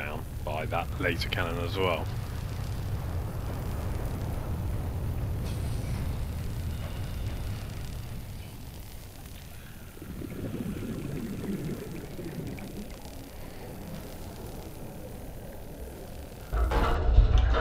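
A laser cutter hums and sizzles steadily as it cuts through metal.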